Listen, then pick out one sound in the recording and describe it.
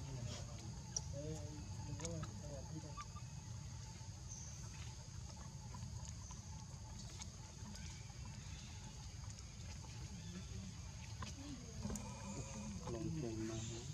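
A baby monkey squeaks softly nearby.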